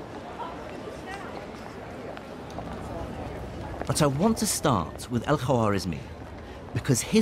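A crowd murmurs and chatters in a busy street.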